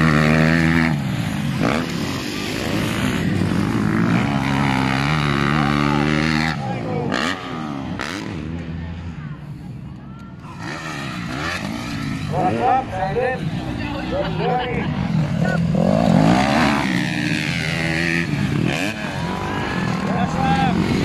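Motorcycle engines rev loudly, rising and falling in pitch.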